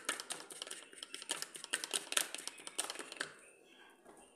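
A metal spoon clinks and scrapes against a plastic tub.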